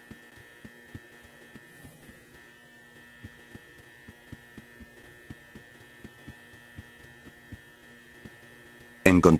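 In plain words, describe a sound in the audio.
Footsteps thud steadily on a soft floor.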